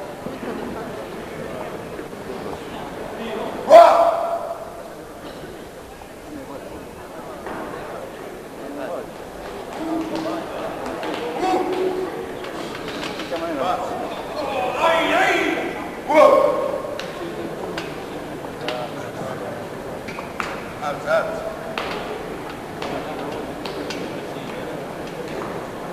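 Men talk quietly in the background.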